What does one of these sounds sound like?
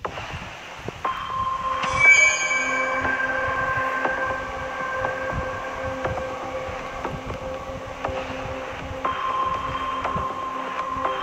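Calm electronic music plays softly.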